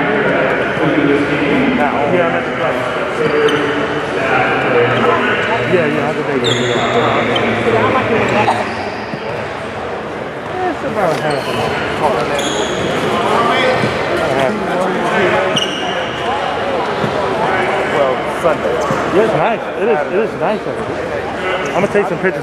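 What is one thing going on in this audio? Several men and boys talk and call out in a large, echoing gym.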